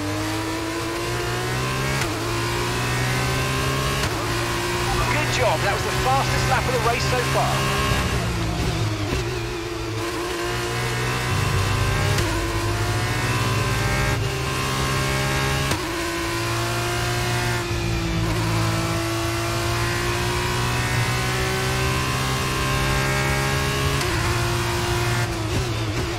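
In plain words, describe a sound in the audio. A racing car engine screams at high revs, shifting up and down through the gears.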